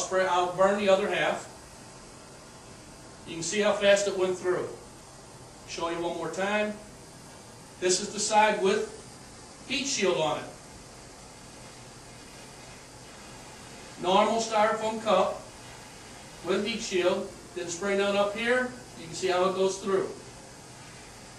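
An elderly man speaks calmly, explaining.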